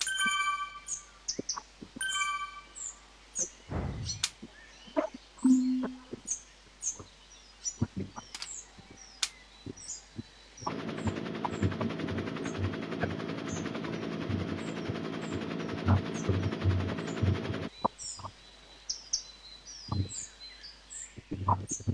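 A bicycle on an indoor trainer whirs steadily as a rider pedals.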